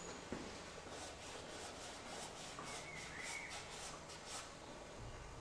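A paintbrush swishes in quick strokes across canvas.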